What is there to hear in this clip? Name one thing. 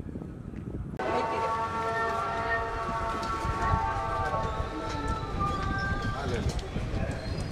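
A crowd of men and women murmurs close by.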